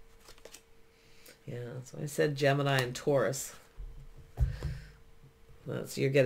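A playing card slides softly across a cloth.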